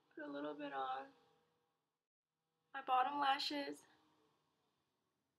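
A young woman speaks close to the microphone in a lively voice.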